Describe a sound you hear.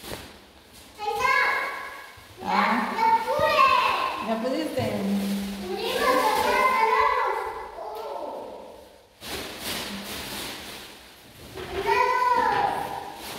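A woman talks nearby with animation.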